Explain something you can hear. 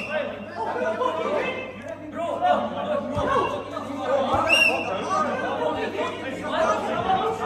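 Several men talk and call out loudly in a large echoing hall.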